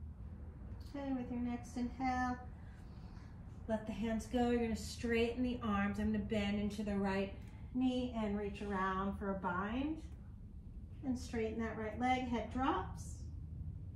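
A woman speaks calmly and slowly nearby.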